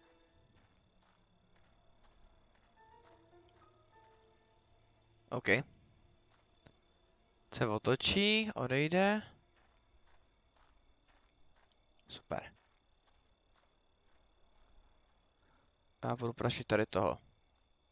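Footsteps fall softly and steadily on the ground.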